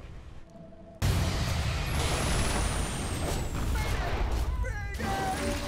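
Flames crackle and whoosh.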